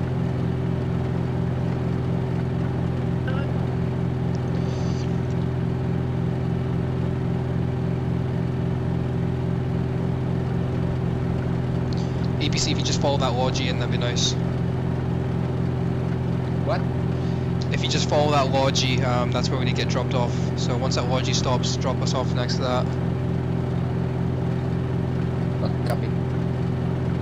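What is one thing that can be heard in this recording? A helicopter engine drones steadily from inside the cabin.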